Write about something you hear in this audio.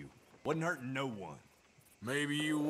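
A man speaks in a low, defensive voice.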